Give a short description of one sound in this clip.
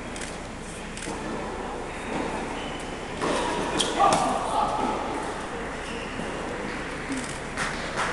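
Tennis balls are struck with sharp pops, echoing in a large hall.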